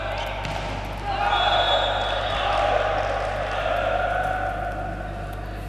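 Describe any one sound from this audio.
A crowd cheers in an echoing indoor hall.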